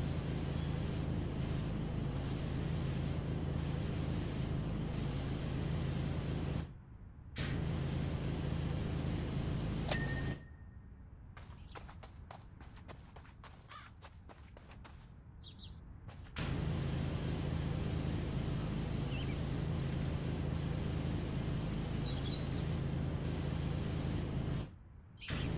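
A pressure washer sprays water in a steady, rushing hiss, stopping briefly now and then.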